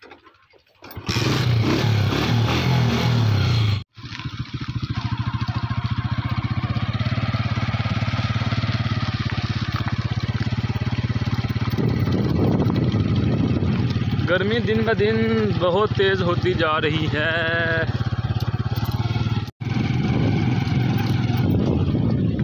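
A motorcycle engine runs with a steady low rumble.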